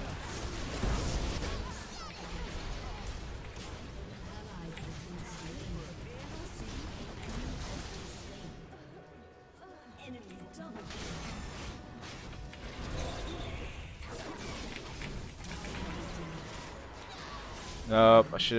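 Weapons clash and spells burst in a busy fight.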